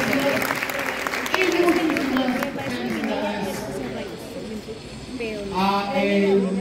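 A folk band plays a lively tune in a large hall.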